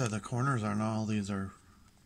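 A plastic card sleeve crinkles as a card slides in.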